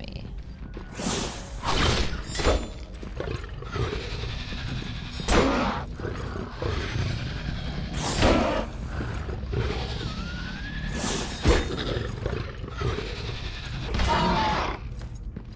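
A large creature roars and snarls.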